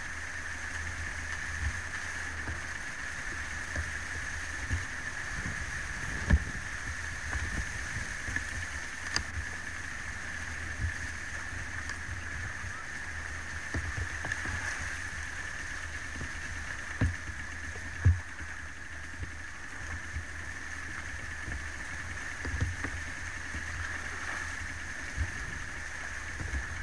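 Elephants wade through river water, splashing.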